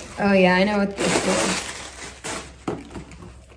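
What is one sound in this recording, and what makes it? A plastic wrapper crinkles.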